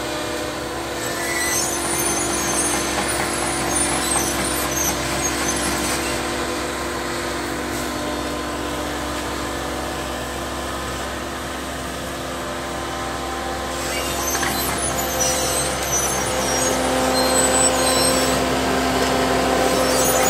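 Metal tracks of an excavator clank and squeak as it drives over the ground.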